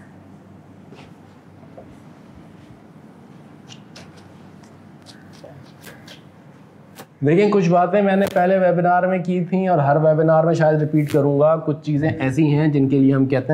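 A man wipes a whiteboard with a cloth.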